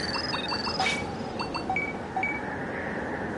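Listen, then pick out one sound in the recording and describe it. Short electronic menu beeps chirp in quick succession.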